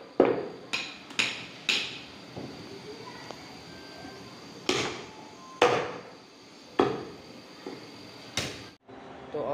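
A cleaver chops meat on a wooden block with sharp thuds.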